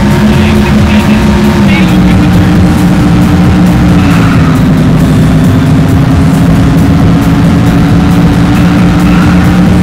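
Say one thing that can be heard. A racing car engine roars steadily at high speed, its pitch dipping slightly.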